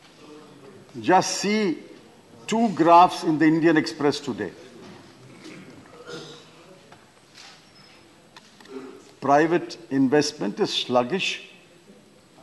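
An elderly man speaks forcefully into a microphone.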